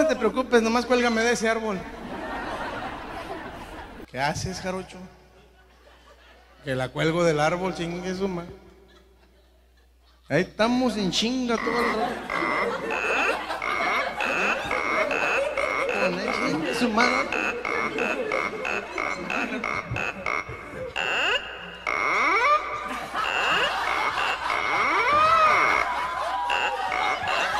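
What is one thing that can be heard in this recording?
A man sings loudly into a microphone over a loudspeaker.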